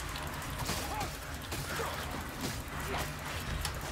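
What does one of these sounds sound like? Blades hack into flesh with wet, heavy blows.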